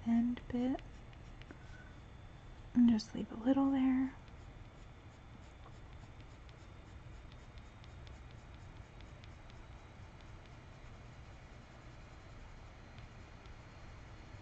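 A coloured pencil scratches softly on paper in short strokes.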